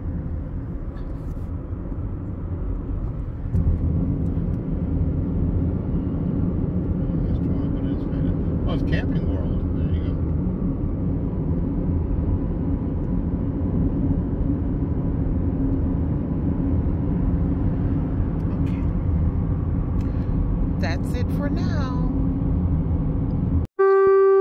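A car engine hums and tyres roar steadily on a highway, heard from inside the car.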